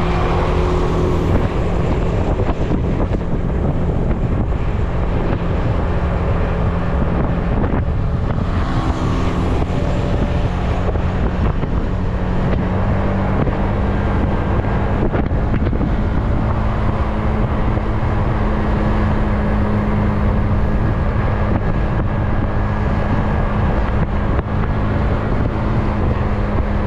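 A scooter engine hums steadily.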